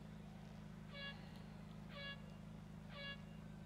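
Short electronic beeps sound in a steady countdown.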